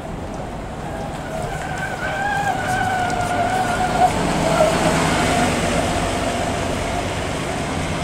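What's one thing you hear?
An articulated city bus drives past and pulls away.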